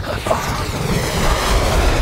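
A burning aircraft roars past overhead.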